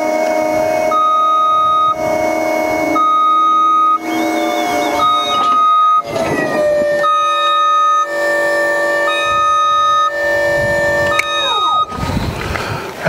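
A small engine runs steadily and changes pitch, then shuts off.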